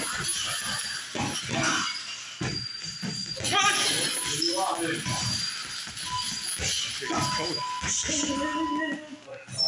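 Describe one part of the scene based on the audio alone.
Gloved fists thud against heavy punching bags.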